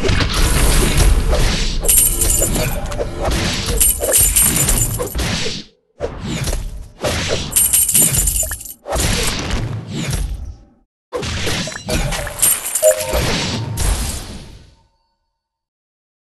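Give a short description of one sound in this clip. Game battle effects clash and burst.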